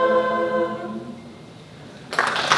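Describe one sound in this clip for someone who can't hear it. A choir sings and holds a final chord in an echoing hall.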